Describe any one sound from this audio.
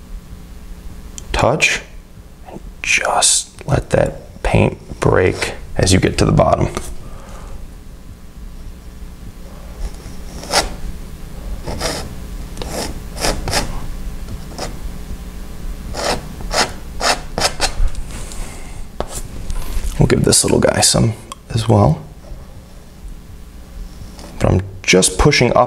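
A painting knife scrapes softly across canvas.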